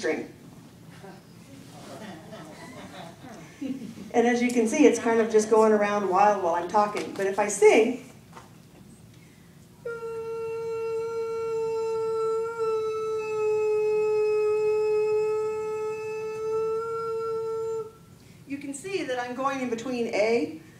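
A middle-aged woman speaks into a microphone, heard through a loudspeaker.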